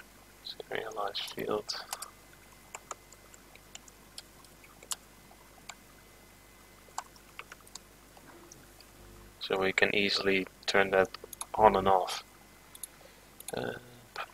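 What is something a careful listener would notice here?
A young man talks calmly into a close microphone, pausing now and then.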